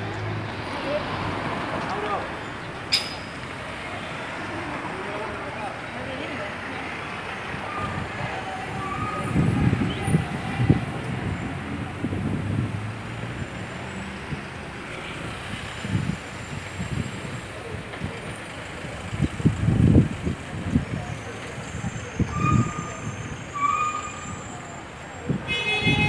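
City traffic hums steadily outdoors.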